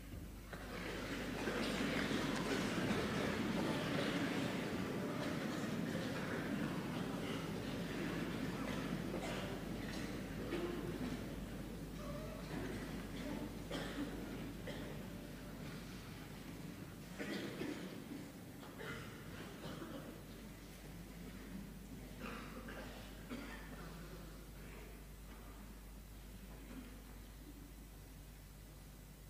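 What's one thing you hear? An audience applauds in a large hall, slowly fading.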